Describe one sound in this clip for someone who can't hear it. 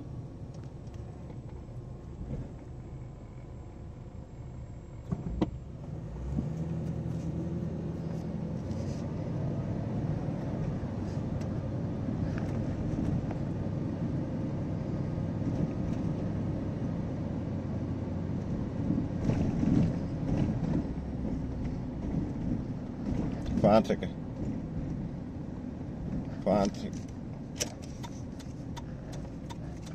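A car engine rumbles low from inside the car, growing louder as the car pulls away.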